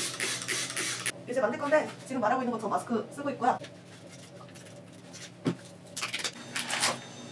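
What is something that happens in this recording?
A spray bottle hisses in short bursts.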